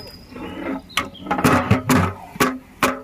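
A metal vessel clanks against the rim of a large pot.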